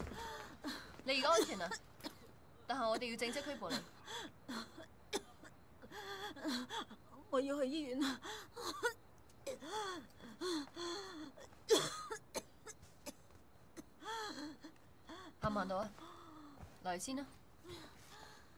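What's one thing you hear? A young woman speaks firmly and calmly up close.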